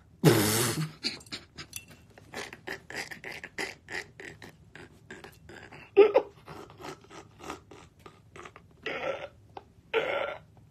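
A young man laughs softly into his hand.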